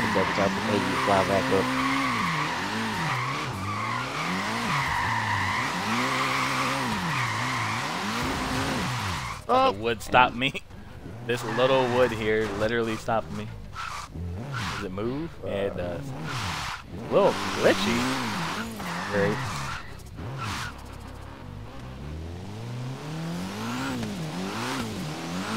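A car engine revs up and down hard, again and again.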